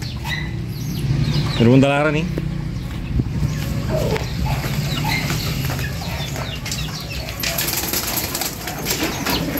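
Caged pigeons coo softly nearby.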